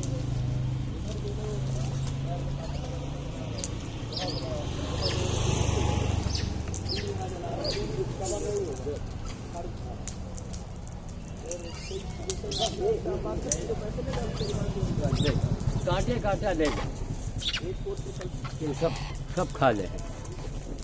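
Several men talk with animation nearby, outdoors.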